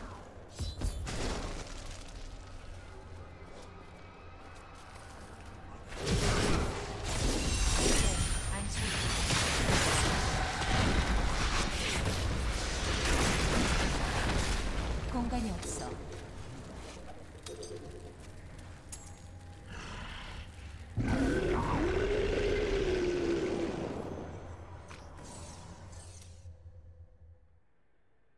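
A low rumbling hum runs through the game's sound.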